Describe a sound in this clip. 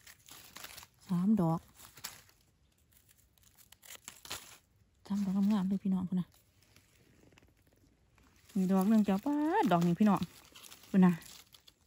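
A knife scrapes and cuts a mushroom stem.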